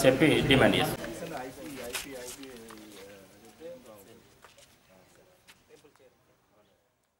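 Men talk quietly in the background.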